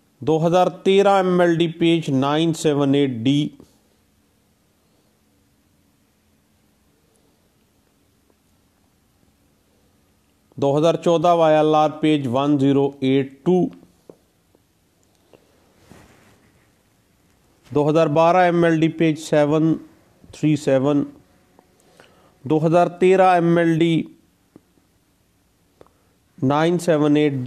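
A middle-aged man speaks calmly over an online call, in bursts with long pauses.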